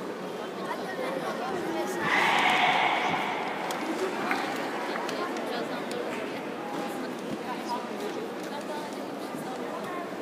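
A small crowd murmurs and chatters in a large echoing hall.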